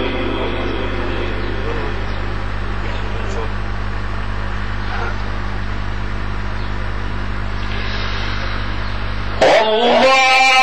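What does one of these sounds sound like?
A man speaks slowly into a microphone, then chants loudly near the end.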